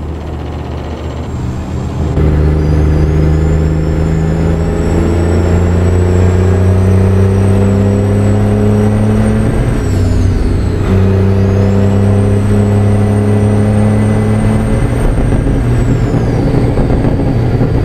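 A truck engine drones steadily and rises in pitch as it speeds up, dropping briefly during a gear change.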